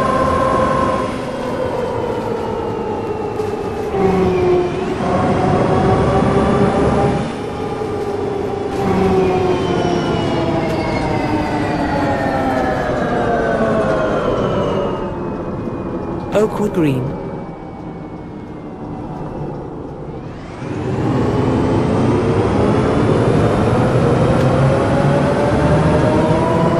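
A bus engine hums and whines, rising and falling in pitch as the bus speeds up and slows down.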